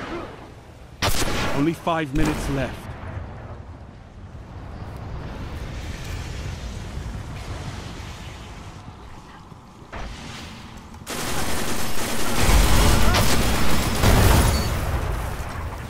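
A heavy energy weapon fires with loud blasts.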